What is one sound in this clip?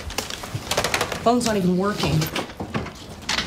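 A young woman speaks into a telephone handset.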